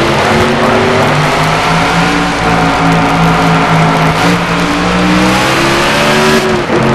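A race car engine roars steadily at high speed, its pitch gliding slowly.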